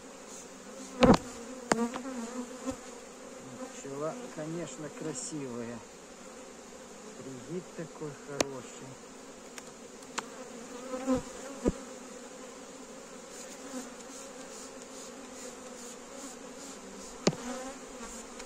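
Wooden hive frames knock and scrape as they are pried loose.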